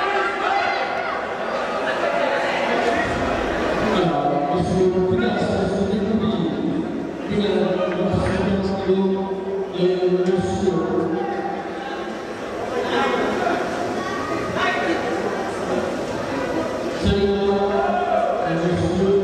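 A crowd of men and women chatters and calls out in a large echoing hall.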